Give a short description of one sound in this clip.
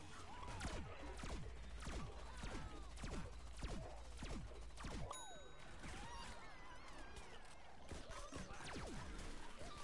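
Video game weapons fire with cartoonish zaps and blasts.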